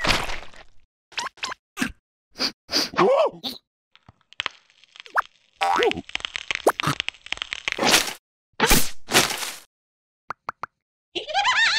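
A squeaky, high-pitched cartoon voice babbles with animation.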